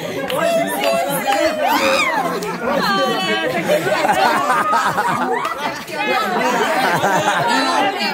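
A young man laughs loudly close by.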